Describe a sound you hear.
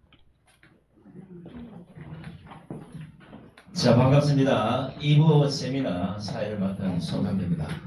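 A middle-aged man speaks with animation through a microphone and loudspeaker.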